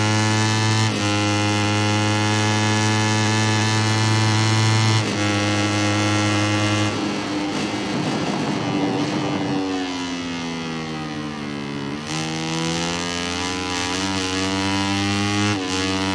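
A motorcycle engine screams at high revs, shifting gears and dropping in pitch under braking before revving up again.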